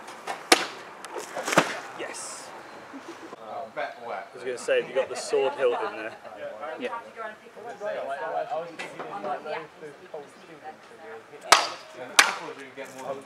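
A sword blade strikes a plastic bottle with a sharp whack.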